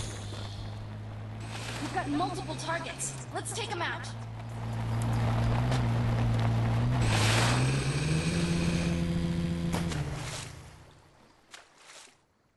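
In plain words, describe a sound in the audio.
A vehicle engine hums steadily, then fades away.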